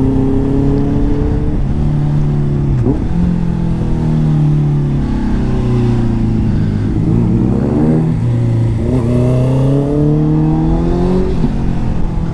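A motorcycle engine hums close by, its pitch rising and falling as the rider shifts gears.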